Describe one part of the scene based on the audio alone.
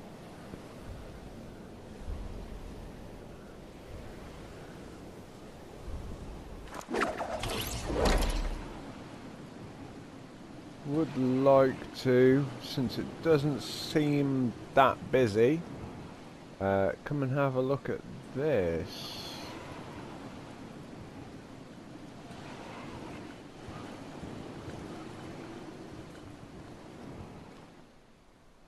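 Wind rushes steadily past during a fall through the air.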